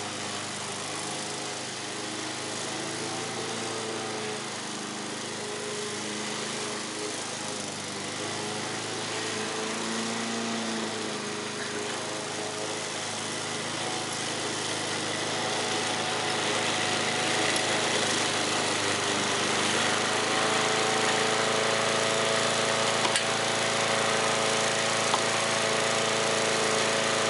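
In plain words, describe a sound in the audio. A lawn mower engine drones steadily, growing louder as it comes closer.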